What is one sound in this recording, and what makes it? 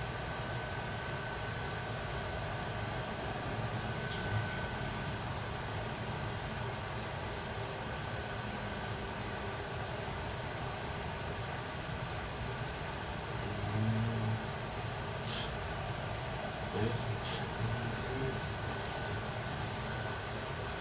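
Spaceship engines hum and rumble steadily.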